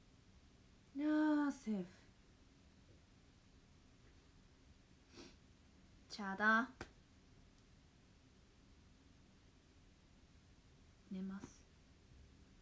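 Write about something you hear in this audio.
A young woman speaks briefly and softly close by, with long pauses between short phrases.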